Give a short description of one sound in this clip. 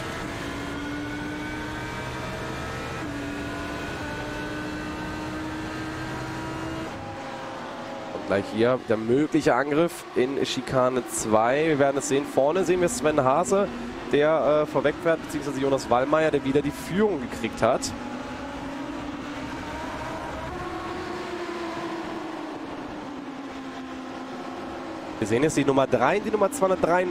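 Racing car engines roar at high revs and shift gears.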